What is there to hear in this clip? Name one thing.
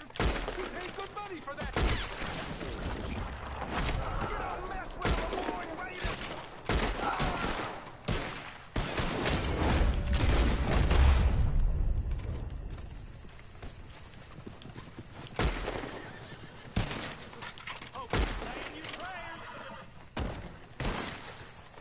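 A lever-action rifle clacks as it is worked between shots.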